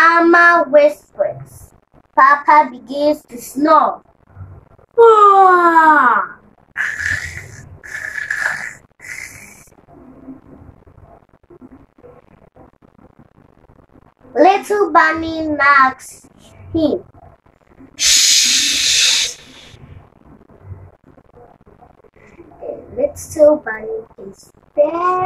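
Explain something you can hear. A young girl speaks close by, reading aloud with animation.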